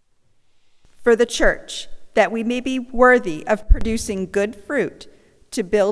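A woman reads out through a microphone in an echoing hall.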